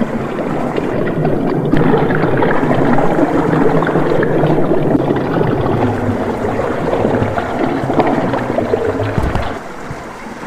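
Water gurgles and swirls loudly.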